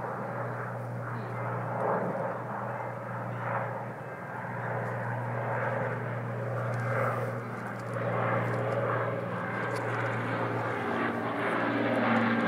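A propeller plane's engines drone steadily overhead.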